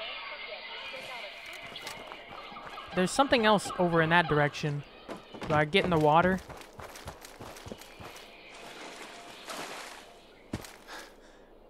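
Footsteps crunch over gravel and rubble.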